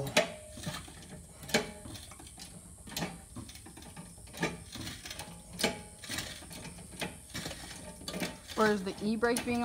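A hydraulic jack handle is pumped, clicking sharply with each stroke.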